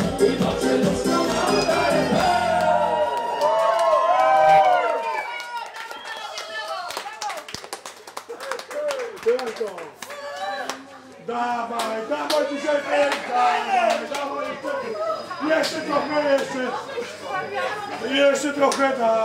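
A crowd of adults chatters and cheers loudly nearby.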